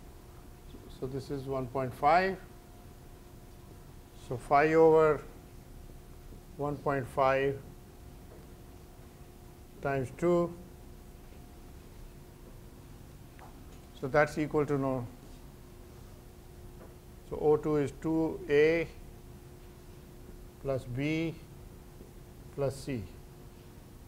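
An elderly man speaks slowly in short phrases, with pauses.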